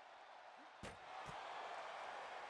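A heavy body slams against a wooden table with a thud.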